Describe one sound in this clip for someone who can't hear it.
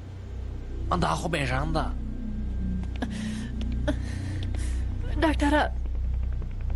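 A young woman groans with strain.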